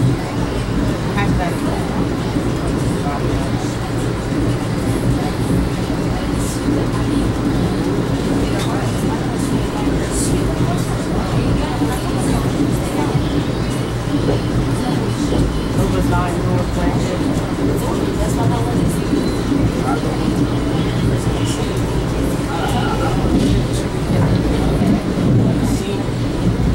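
Wheels clatter and rattle over the rails.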